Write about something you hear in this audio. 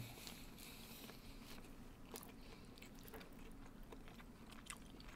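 Two men chew food close to a microphone.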